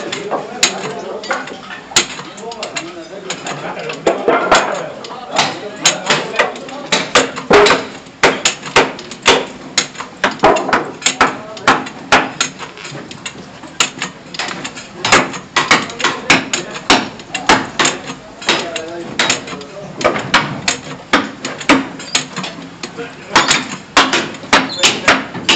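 A hammer strikes metal and wood in sharp, repeated blows.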